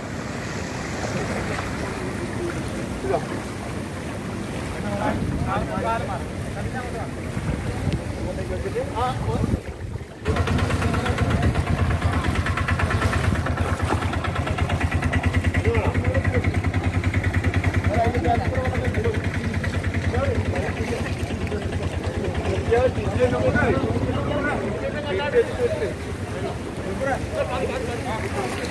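Shallow floodwater splashes as men wade and dig through it.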